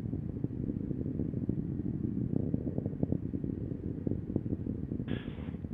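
A fireball roars and rumbles with low crackling bursts.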